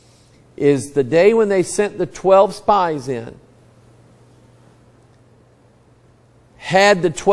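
A middle-aged man preaches with animation through a microphone, pausing between phrases.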